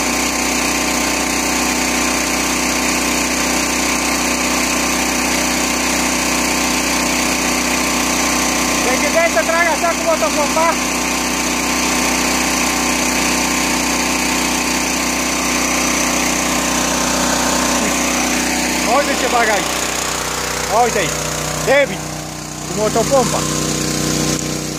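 A petrol water pump engine drones steadily nearby.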